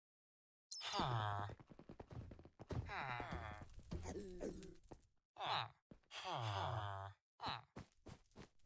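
Game villagers grunt with short nasal murmurs.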